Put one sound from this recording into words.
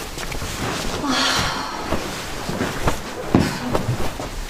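A coat rustles as it is handled.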